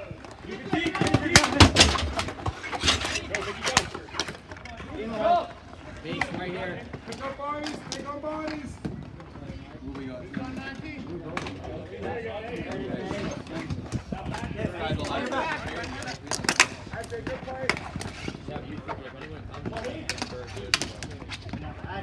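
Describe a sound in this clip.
Young players shout to one another across the court.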